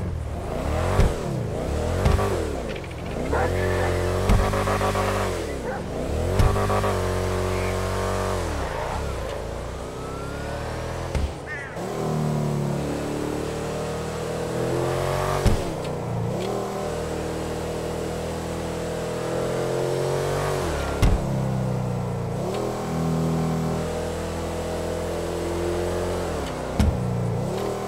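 A car exhaust pops and bangs sharply.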